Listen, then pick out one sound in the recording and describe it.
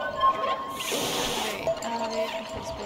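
A cat hisses.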